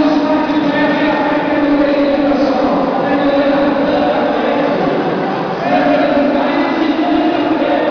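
A crowd of men and women talks and shouts in a large echoing hall.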